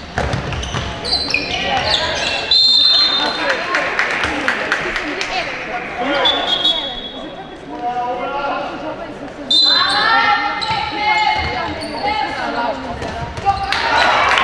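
Young women shout and call out to each other during play.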